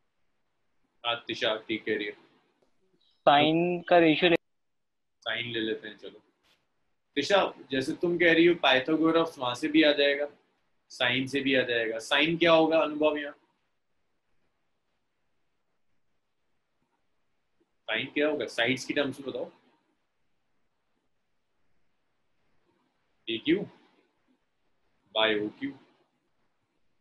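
A young man speaks calmly through a microphone, explaining in short bursts.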